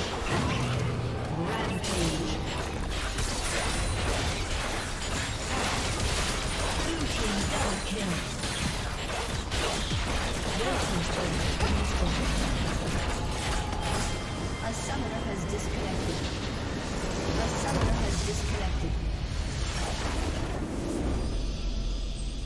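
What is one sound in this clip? Game spell effects and blows crash and whoosh in a busy fight.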